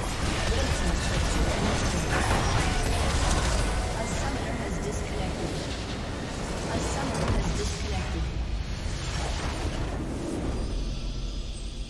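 Spell blasts and explosions crash loudly during a video game battle.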